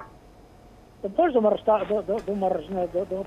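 A man speaks calmly over a phone line.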